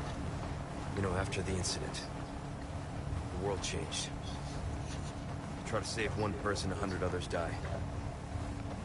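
A man speaks quietly and calmly.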